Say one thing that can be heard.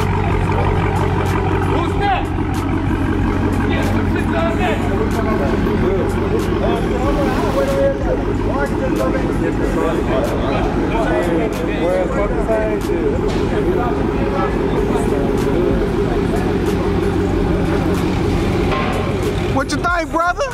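A powerful car engine idles with a deep, loud rumble.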